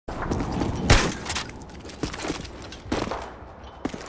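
Sharp gunshots crack with short echoes.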